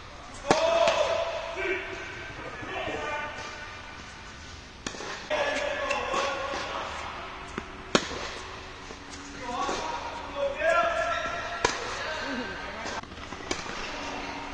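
A tennis racket strikes a ball in an echoing indoor hall.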